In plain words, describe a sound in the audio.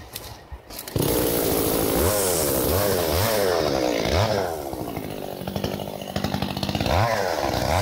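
A chainsaw roars loudly and cuts through brush.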